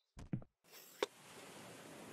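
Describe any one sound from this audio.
A lever clicks sharply.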